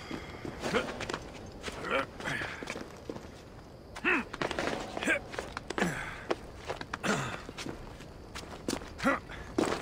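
Hands grab and scrape on rock during a climb.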